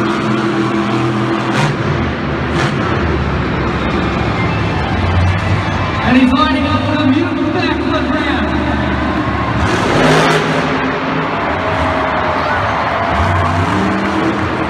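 A monster truck engine roars and revs loudly in a large arena.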